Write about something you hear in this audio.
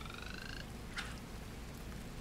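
A fishing line is cast and lands in water with a splash.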